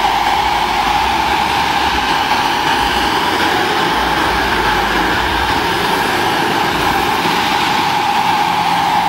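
A model helicopter's electric motor and rotor whine loudly and steadily, echoing in a large hall.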